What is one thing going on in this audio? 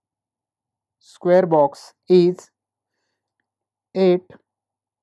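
A man speaks calmly and closely into a microphone, in short bursts.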